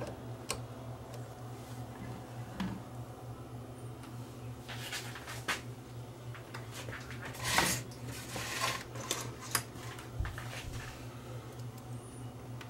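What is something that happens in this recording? Small metal and plastic parts click and rattle under fingers.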